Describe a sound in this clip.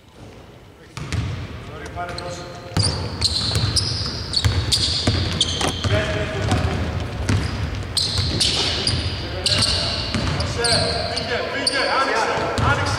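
A basketball bounces on a hardwood court.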